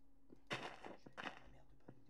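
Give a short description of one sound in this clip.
Pigs grunt close by.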